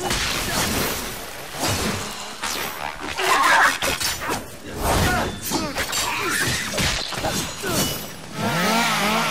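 Blades slash and strike in quick bursts.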